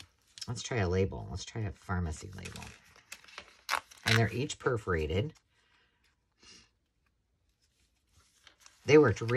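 Paper rustles softly as it is folded and handled.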